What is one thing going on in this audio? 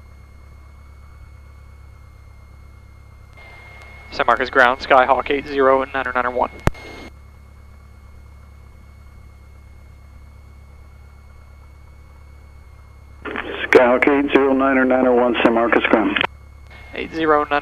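A small propeller engine drones steadily at idle.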